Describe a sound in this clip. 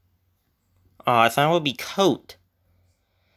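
A young man speaks briefly and with animation, close to the microphone.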